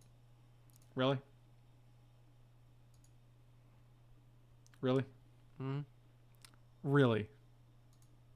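A man speaks in short, brief bursts close to a microphone.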